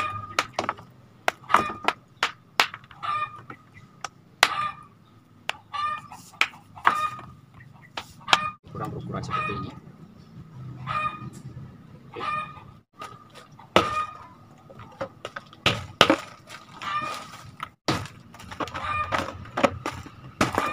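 A hammer taps and chips brick pieces.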